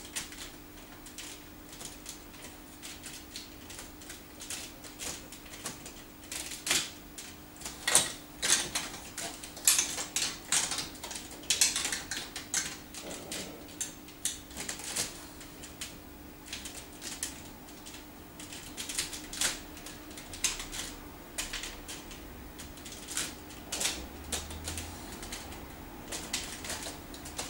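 Plastic building blocks click and clack together as a child snaps them into place.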